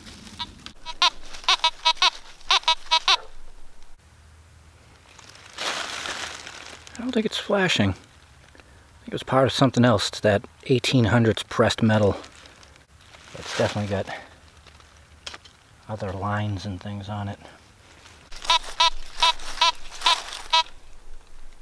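A metal detector beeps in quick repeated tones.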